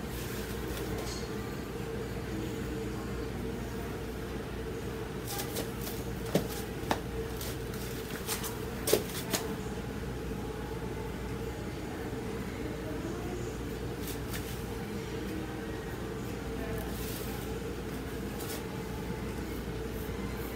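A paintbrush dabs and scrapes softly on a canvas.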